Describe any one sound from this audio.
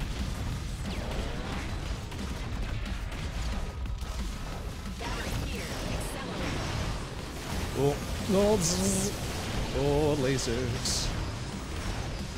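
Video game blasters fire and explosions pop rapidly.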